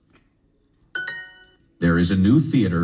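A bright electronic chime rings once.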